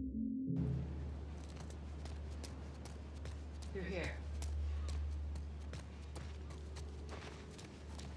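Footsteps run on hard ground outdoors.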